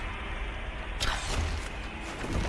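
A bow twangs as an arrow is shot.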